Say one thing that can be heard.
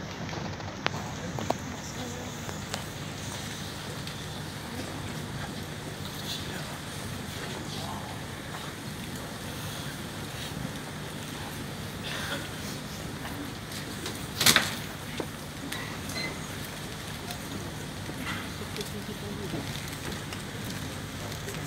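A crowd murmurs quietly in a large echoing hall.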